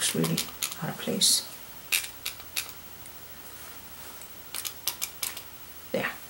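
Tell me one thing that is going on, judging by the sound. A brush taps and dabs lightly on paper.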